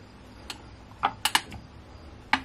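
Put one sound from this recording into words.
A plastic valve clicks as a finger presses it.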